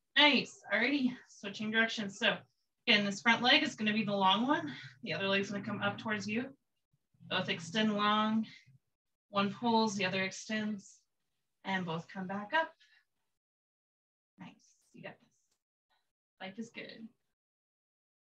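A young woman speaks calmly, giving instructions close by.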